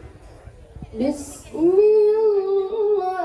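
A woman sings into a microphone, heard through loudspeakers outdoors.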